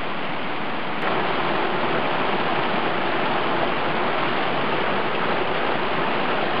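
A stream splashes and rushes over rocks close by.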